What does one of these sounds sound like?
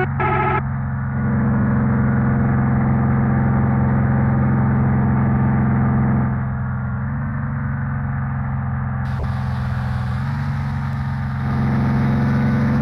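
A heavy truck engine hums steadily and changes pitch as it drives.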